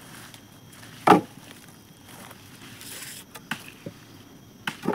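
A wooden log thuds as a man handles it.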